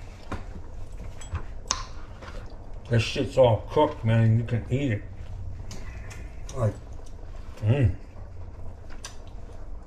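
Hands scrape food off a cutting board with light taps.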